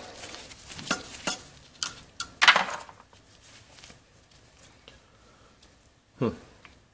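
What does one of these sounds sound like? Hard plastic parts click and knock as hands handle them.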